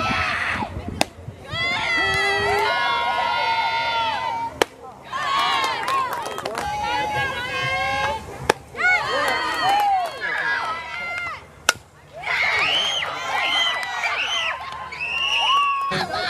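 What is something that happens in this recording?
Young women chant and cheer loudly.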